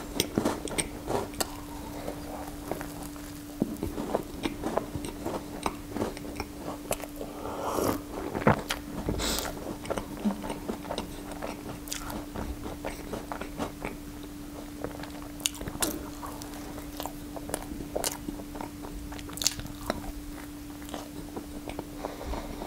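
A man chews and munches food close to a microphone.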